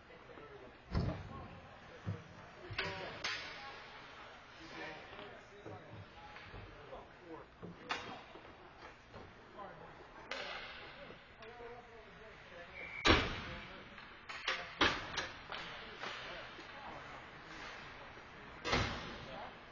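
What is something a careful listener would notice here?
Hockey sticks and pucks clack sharply on the ice and boards.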